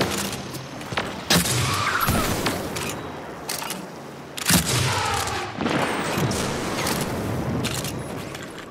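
A video game weapon fires with booming blasts.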